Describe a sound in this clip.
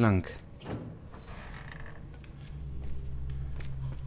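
A heavy door creaks as it is pushed open.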